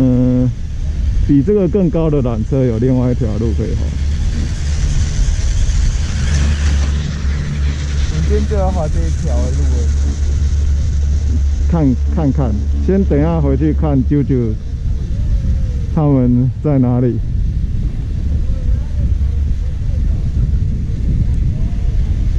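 A chairlift rumbles steadily along its cable outdoors.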